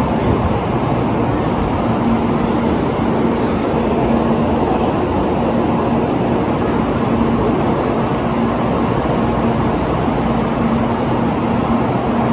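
A high-speed train rolls slowly along a platform with a loud, steady rumble and hum.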